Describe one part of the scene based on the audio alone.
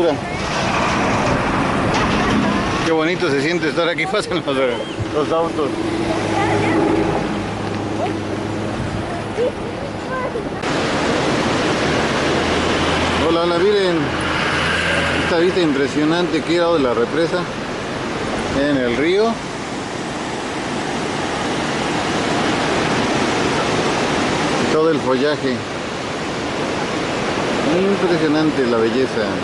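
Water rushes steadily far below.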